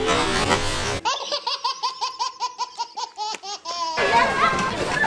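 A baby laughs loudly and with delight.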